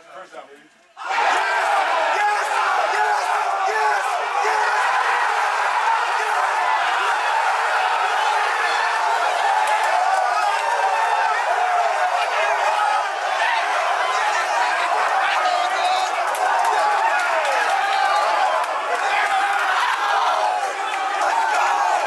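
A crowd of men cheers and shouts loudly in an echoing room.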